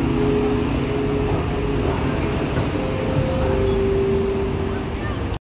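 A young woman sings through a loudspeaker.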